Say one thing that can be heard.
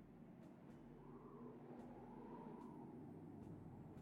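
A man speaks quietly close to a microphone.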